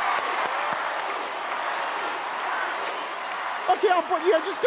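A large audience cheers and claps in a big hall.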